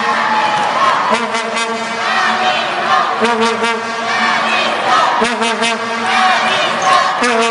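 A group of young women shout and cheer excitedly nearby.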